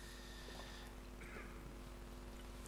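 Water pours into a glass.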